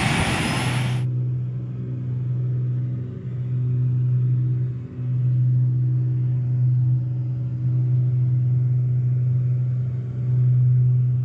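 An aircraft engine drones steadily at a low pitch.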